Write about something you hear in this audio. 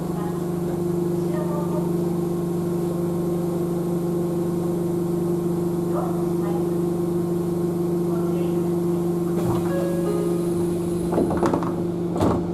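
A train hums steadily while running along the track.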